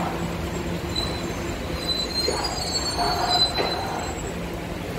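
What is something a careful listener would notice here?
Train brakes squeal high and thin.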